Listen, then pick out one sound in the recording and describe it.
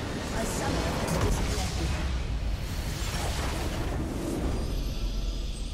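A loud magical blast bursts as a structure is destroyed.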